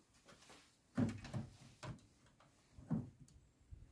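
Small objects knock and click softly.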